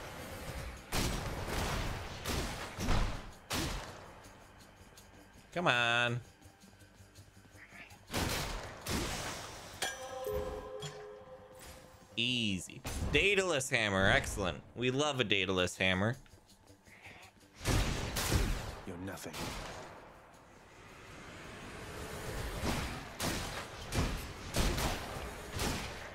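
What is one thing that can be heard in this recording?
Video game combat sounds crash and clang in quick bursts.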